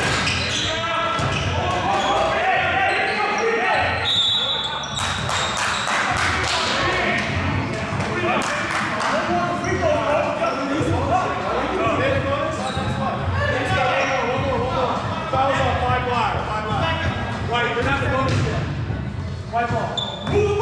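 Sneakers squeak on a hardwood floor in a large echoing gym.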